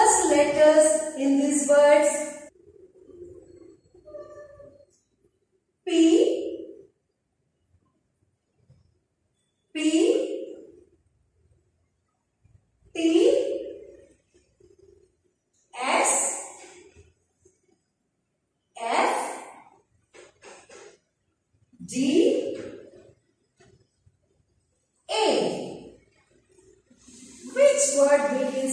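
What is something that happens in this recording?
A woman speaks clearly and calmly, close by, in short spoken bursts with pauses between them.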